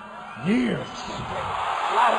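Fans scream and shout with excitement.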